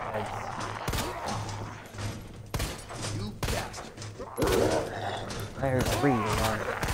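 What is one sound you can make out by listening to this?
Gunshots bang out one after another.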